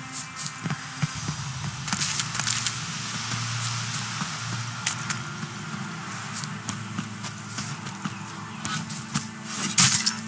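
Footsteps run over a dirt path.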